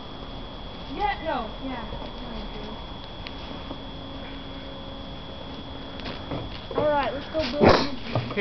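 Young women talk and laugh nearby.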